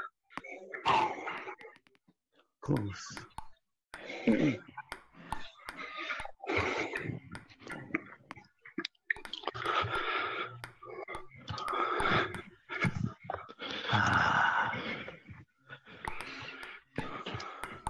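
A ping-pong ball clicks sharply against paddles and a table.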